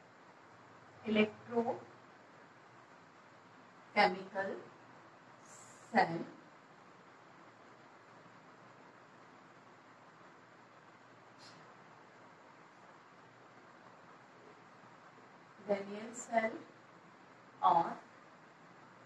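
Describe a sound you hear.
A woman speaks in short phrases nearby.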